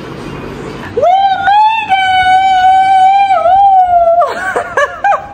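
A woman shouts out a long, drawn-out excited cry close by.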